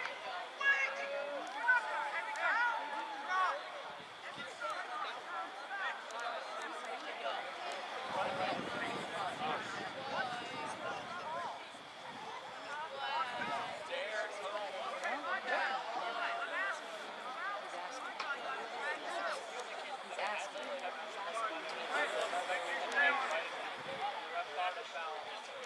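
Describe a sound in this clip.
A crowd of young people chatters and calls out nearby, outdoors.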